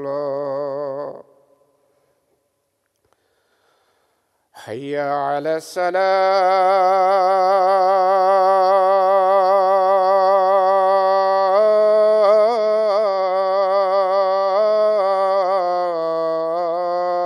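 A man chants in a long, loud, sustained melodic call, close by, in an echoing room.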